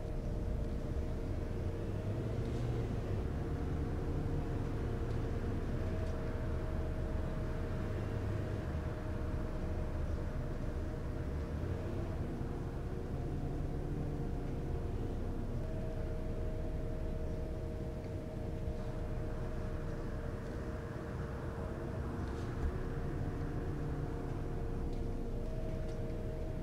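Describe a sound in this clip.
A bus engine idles with a steady low rumble and hum.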